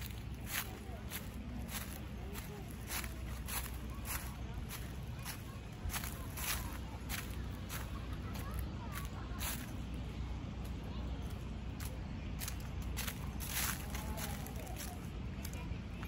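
Footsteps crunch on dry leaves at a steady walking pace.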